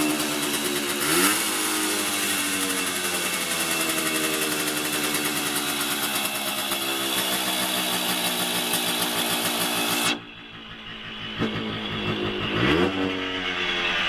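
A motorcycle engine briefly revs up and falls back.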